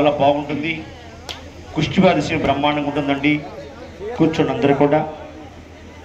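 A crowd of men and women chant and shout loudly close by.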